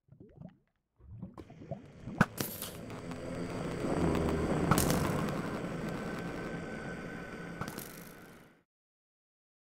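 An explosion booms and rumbles, then fades.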